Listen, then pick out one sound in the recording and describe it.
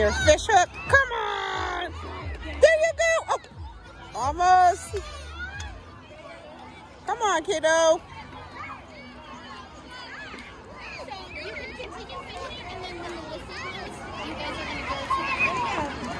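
Young children talk and call out excitedly nearby.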